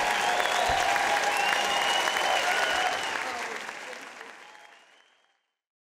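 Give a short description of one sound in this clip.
People in a crowd cheer and whistle.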